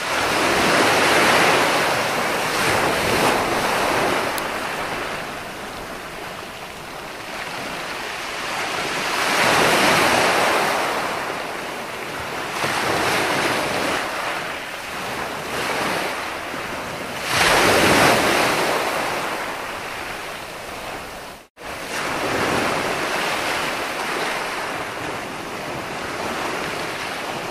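Waves crash and wash onto a shore in surging rushes.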